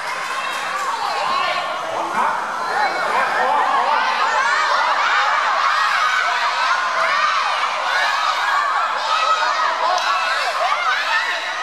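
A crowd of young voices shouts and cheers excitedly nearby.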